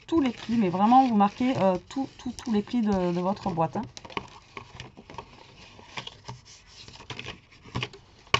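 Stiff paper rustles and crinkles as it is folded.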